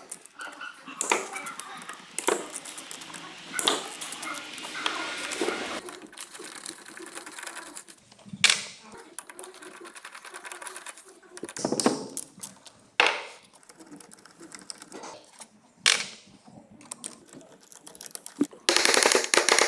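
Metal tools click and clatter against an engine part.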